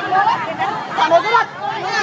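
A woman shouts with animation close by.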